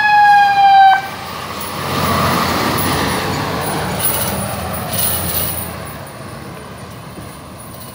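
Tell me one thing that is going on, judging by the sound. A fire engine's engine roars as it drives past and fades away.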